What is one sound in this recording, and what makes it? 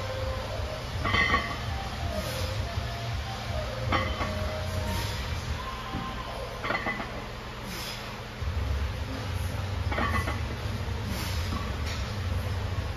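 A barbell's weight plates clink against their bar.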